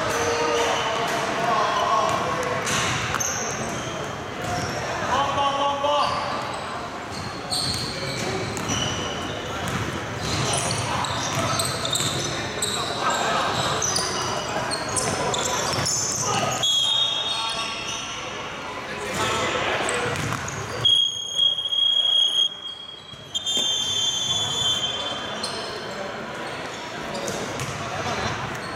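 Basketball shoes squeak sharply on a wooden floor in a large echoing hall.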